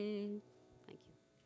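A young woman sings a held note into a microphone.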